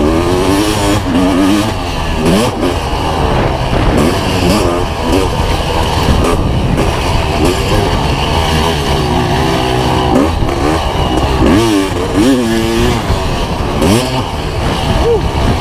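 A dirt bike engine revs up and down loudly, close by.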